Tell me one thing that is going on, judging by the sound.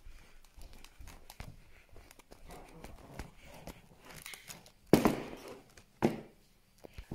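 Cardboard packets rustle and knock against each other in a wire basket.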